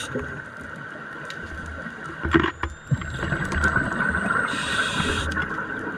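Air bubbles gurgle and rumble underwater.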